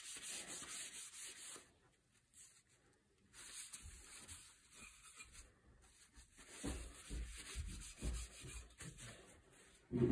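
A cloth rubs against a wooden gun stock.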